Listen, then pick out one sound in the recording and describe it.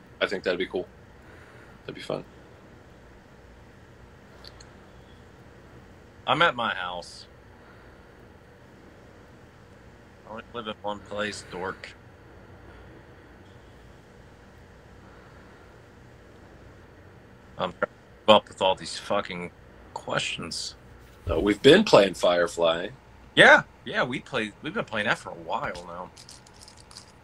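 A man talks casually over an online call.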